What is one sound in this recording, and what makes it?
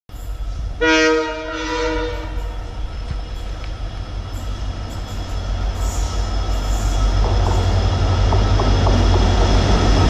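A train rumbles as it approaches.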